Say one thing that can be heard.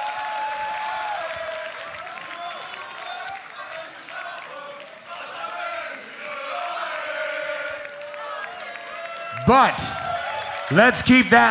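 A crowd of young men cheers and chatters close by.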